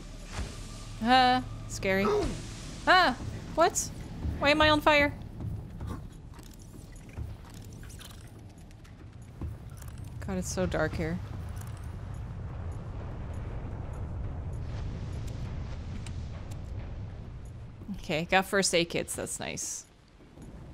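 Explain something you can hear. A young woman speaks close to a microphone, with animation.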